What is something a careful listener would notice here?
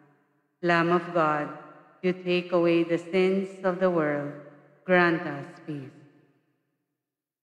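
A man chants slowly in a sung voice through a microphone, echoing in a large hall.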